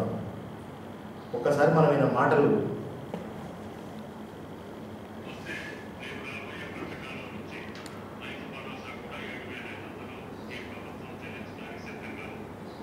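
A middle-aged man speaks steadily, close by.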